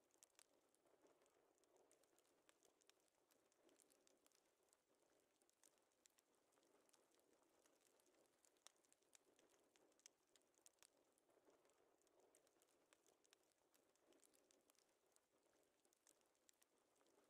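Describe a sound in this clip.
A man speaks quietly and calmly.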